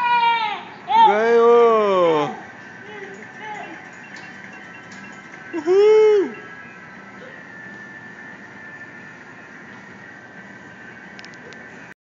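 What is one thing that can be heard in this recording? Video game sounds play quietly from a television.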